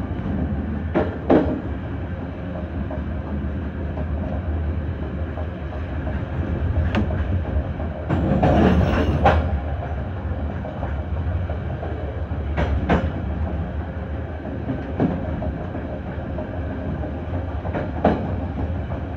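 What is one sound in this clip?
Train wheels clack over rail joints now and then.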